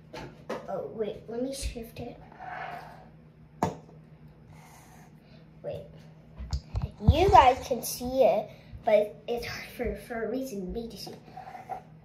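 A young girl talks calmly close by.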